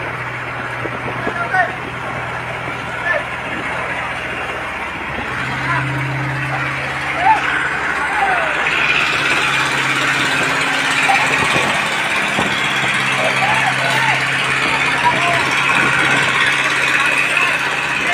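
A large fire roars steadily.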